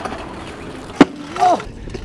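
A scooter lands hard on concrete with a clack.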